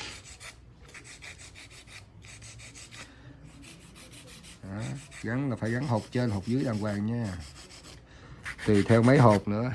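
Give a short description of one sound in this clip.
A nail file rasps back and forth across a fingernail in quick strokes.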